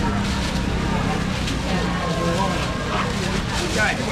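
Plastic bags rustle.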